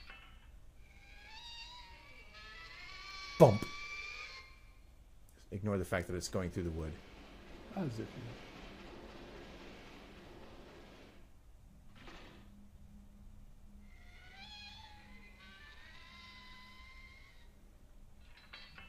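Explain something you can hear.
A metal valve wheel creaks and squeaks as it is turned.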